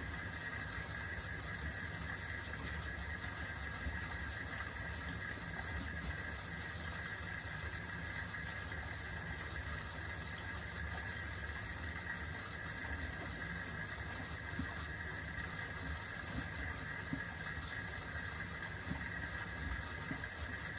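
A washing machine drum turns with a steady low hum.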